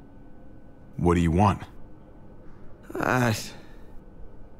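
A young man speaks quietly and strained.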